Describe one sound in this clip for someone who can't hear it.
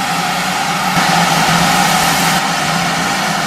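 A steam locomotive hisses loudly, releasing steam.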